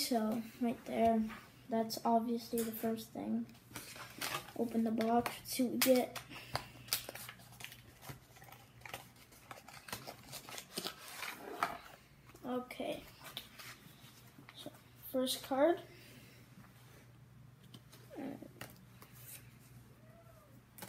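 Trading cards rustle and slap in a boy's hands.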